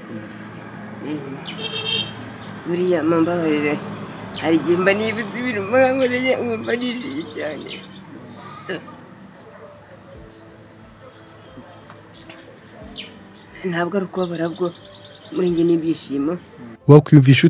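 A middle-aged man speaks tearfully and haltingly, close by.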